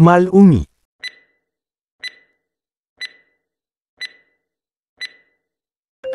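A countdown timer ticks once each second.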